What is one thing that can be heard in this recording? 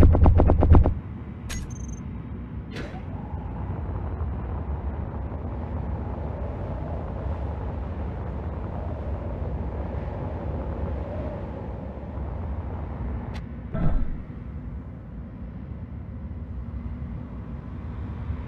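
A jetpack thrusts with a low, steady roar.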